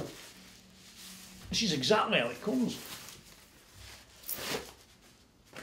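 Paper rustles as a man unwraps a package.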